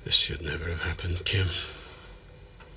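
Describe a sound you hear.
A middle-aged man speaks in a low, tense voice close by.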